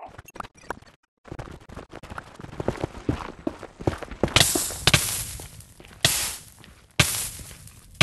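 A pickaxe knocks repeatedly against stone blocks.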